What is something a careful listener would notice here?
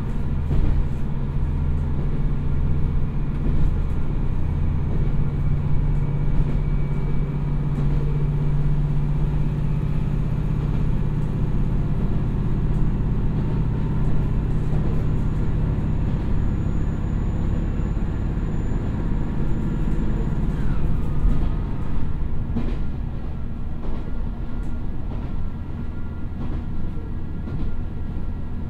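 A diesel train engine rumbles steadily close by.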